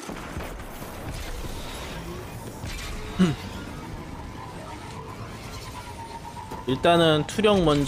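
A hover bike's engine hums steadily as it speeds along.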